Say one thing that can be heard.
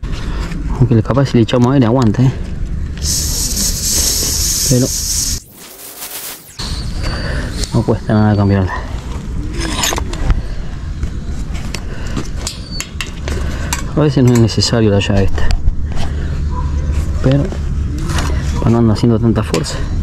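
Hands squeeze and rub a rubber bicycle tyre.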